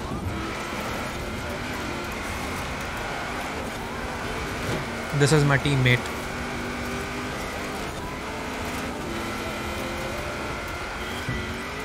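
A car engine roars at high speed, heard through a game.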